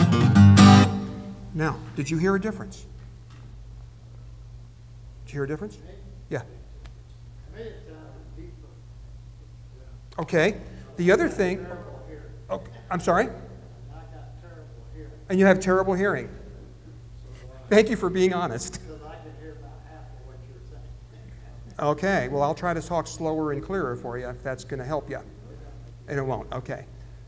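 A middle-aged man talks calmly into a microphone, with pauses.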